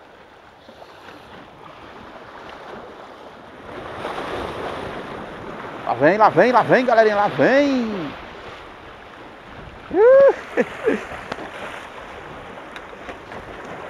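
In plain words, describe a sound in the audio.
Waves splash and wash against rocks nearby.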